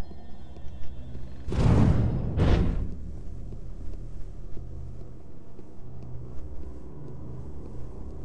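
Footsteps run quickly across a hard stone floor.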